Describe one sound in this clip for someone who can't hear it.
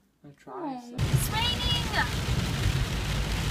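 Heavy rain pours onto a car's windscreen.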